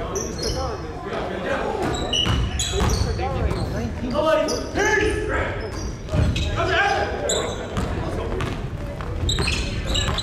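Voices of spectators and players echo in a large gym.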